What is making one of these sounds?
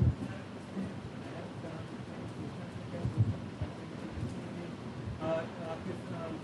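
A man in the audience answers nearby.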